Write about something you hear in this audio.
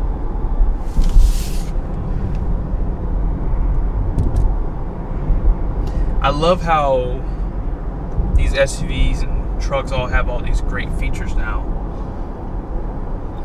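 A car's tyres rumble steadily on the road from inside the moving car.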